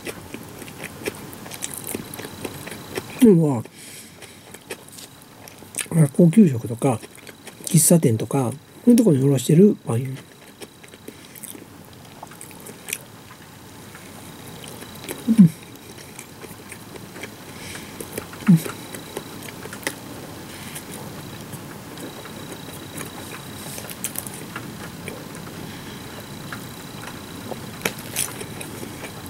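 A woman chews bread with soft mouth sounds.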